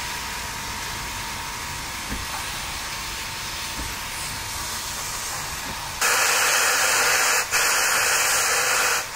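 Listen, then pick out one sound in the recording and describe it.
A steam locomotive hisses steadily nearby, suddenly growing much louder and harsher.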